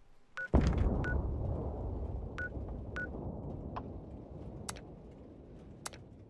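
A low rumble plays steadily and slowly fades.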